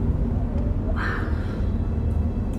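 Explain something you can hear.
A young woman gasps sharply.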